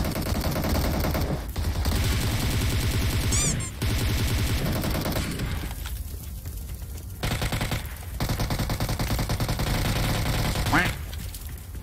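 Rapid gunfire bursts from a game.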